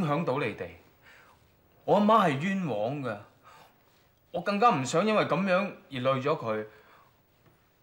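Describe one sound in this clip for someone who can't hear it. A young man speaks earnestly and haltingly, close by.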